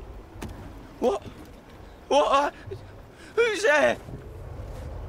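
A young man calls out a question warily.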